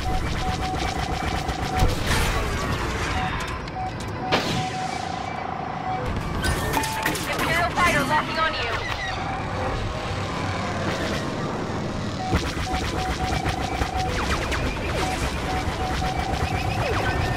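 A spaceship's engine roars steadily.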